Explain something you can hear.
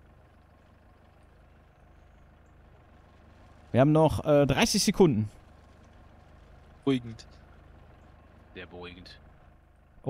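A truck engine idles with a low hum.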